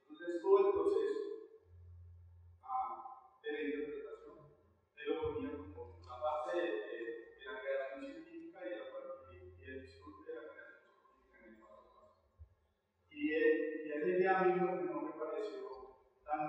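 A man speaks through a microphone in a large echoing hall, reading out with pauses.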